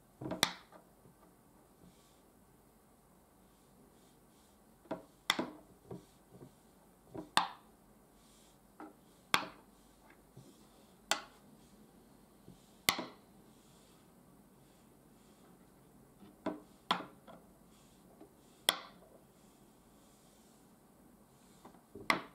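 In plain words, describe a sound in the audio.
Wooden game pieces click sharply as they are set down on a wooden board.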